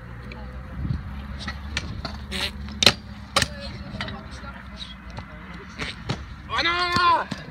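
Scooter wheels roll and rumble over concrete.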